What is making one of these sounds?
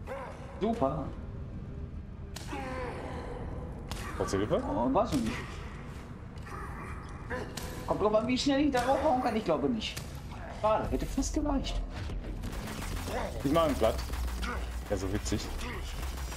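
Two young men talk with animation through a microphone.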